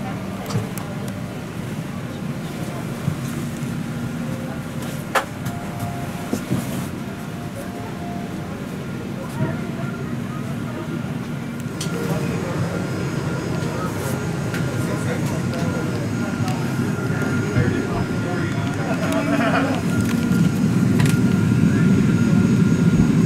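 A steady low hum drones throughout.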